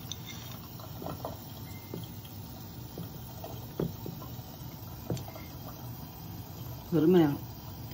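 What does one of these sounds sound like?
Nuts patter and scatter into a glass dish.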